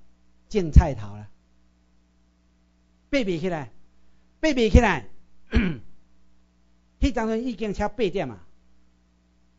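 A middle-aged man speaks through a microphone in short phrases, with pauses.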